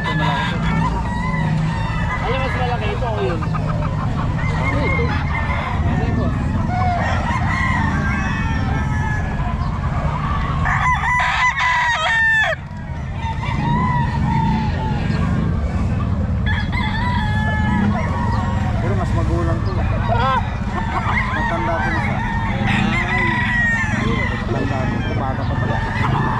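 Roosters crow.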